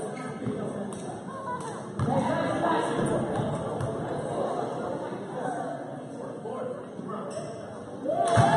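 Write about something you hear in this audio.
A crowd of spectators murmurs and chatters in a large echoing gym.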